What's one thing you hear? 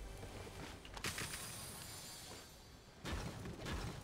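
A treasure chest opens with a bright shimmering jingle.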